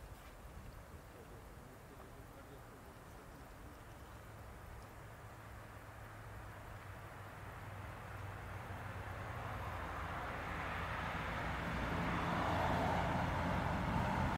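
Wind rushes through pine trees outdoors, growing louder.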